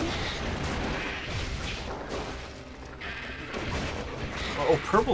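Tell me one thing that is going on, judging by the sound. Magic spells and combat sound effects crackle and boom.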